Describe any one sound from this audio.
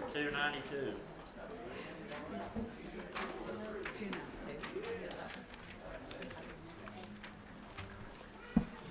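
Men and women murmur and chat quietly among themselves in a large, echoing room.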